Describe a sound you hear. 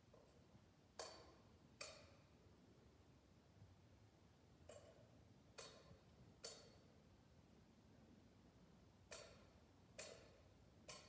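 A metal censer clinks on its chains as it swings, ringing briefly in an echoing room.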